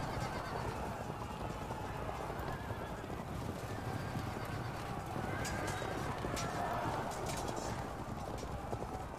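A battle roars with a steady low rumble of charging cavalry and marching troops.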